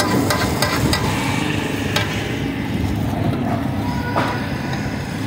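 A metal ladle knocks and scrapes against a metal pan.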